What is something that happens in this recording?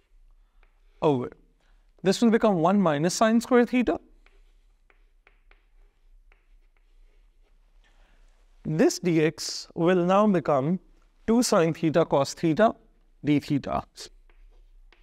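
A man speaks clearly and steadily, close by, as if explaining.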